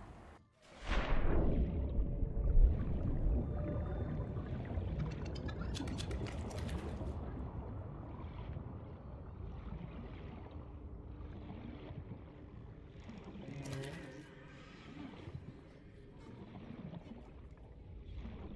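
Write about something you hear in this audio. Water rushes and rumbles low as a diver swims underwater.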